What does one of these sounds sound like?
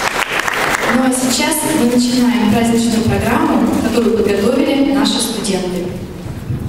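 A young woman speaks into a microphone over loudspeakers in an echoing hall.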